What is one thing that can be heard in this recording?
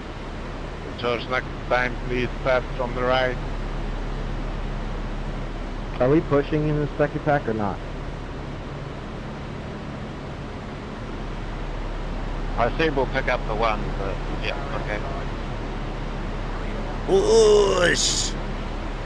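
A man speaks in short bursts, close to a microphone.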